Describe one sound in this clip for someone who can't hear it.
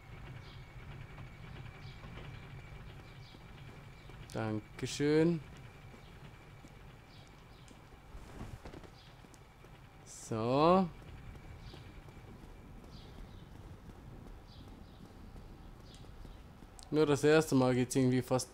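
Armoured footsteps run steadily over stone.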